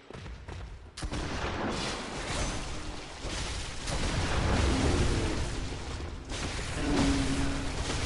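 Heavy blows strike and flesh squelches in a fierce fight.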